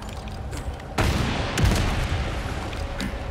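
An explosion booms and roars nearby.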